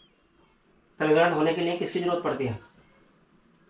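A young man speaks calmly close by.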